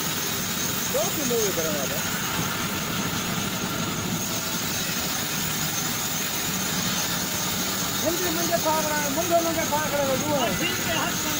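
A man speaks loudly over the machine noise.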